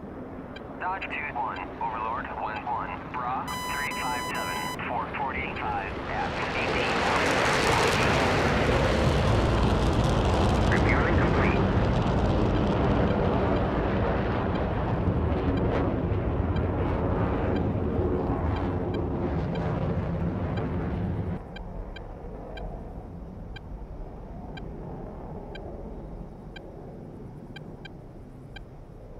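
A jet engine hums and rumbles steadily, swelling louder for a while before settling lower.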